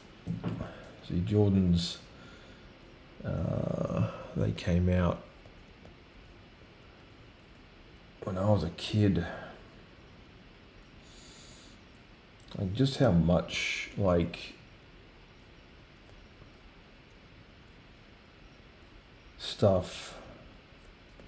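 A man talks calmly into a close microphone in short bursts.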